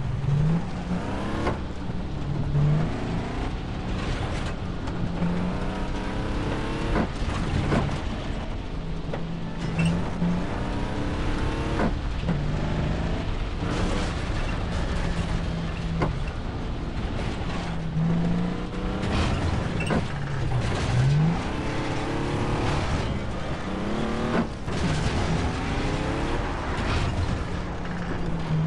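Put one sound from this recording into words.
An engine hums and revs as a vehicle drives over rough ground.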